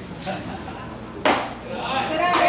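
A baseball smacks into a catcher's mitt.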